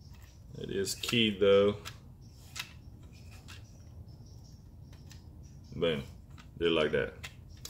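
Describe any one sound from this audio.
Plastic parts click and tap as they are handled.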